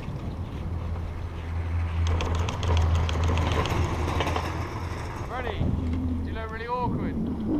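A chairlift rumbles and clatters as it passes over the wheels of a lift tower.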